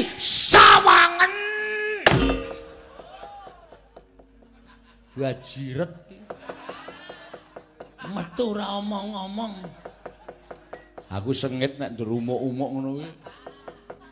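A man speaks and sings in dramatic, changing character voices.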